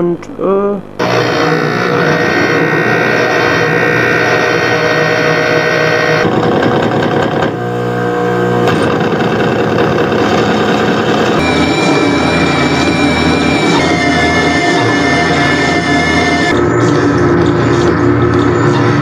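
Electronic music plays loudly and steadily.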